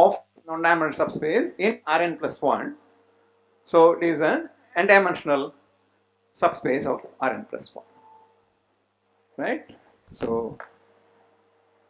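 An elderly man lectures calmly through a microphone.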